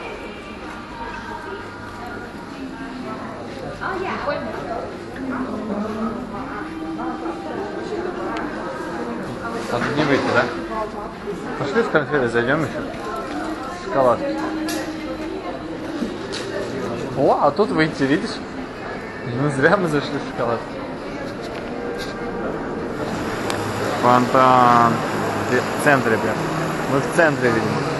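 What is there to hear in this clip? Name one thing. Many people chatter nearby in a busy, echoing hall.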